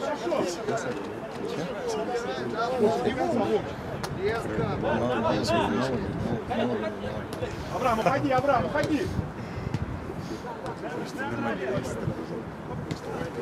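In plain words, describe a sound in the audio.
Men shout and call to each other outdoors across an open field.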